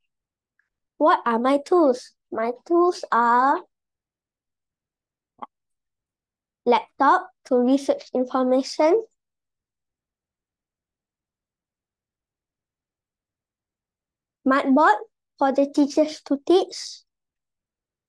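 A young boy speaks calmly and clearly into a close microphone, in short phrases with pauses.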